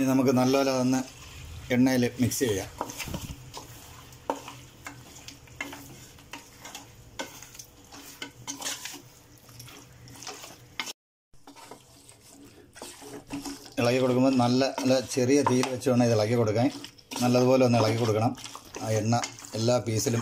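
A spoon scrapes and stirs food in a metal pot.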